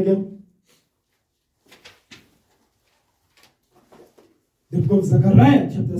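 A man reads aloud calmly and close into a microphone.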